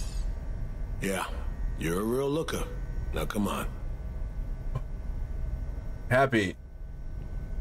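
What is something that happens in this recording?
A young man speaks briefly into a close microphone.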